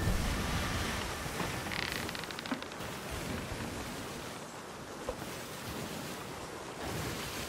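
Stormy sea waves roar and crash steadily.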